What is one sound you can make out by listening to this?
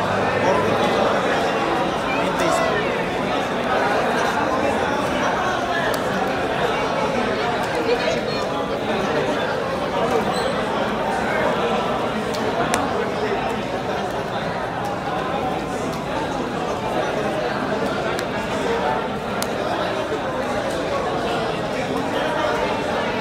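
Playing cards slide and tap softly on a cloth mat.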